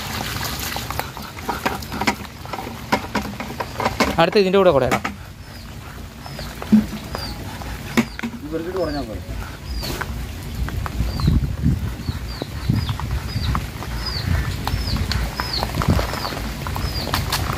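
Live fish flop and slap wetly on a plastic sheet.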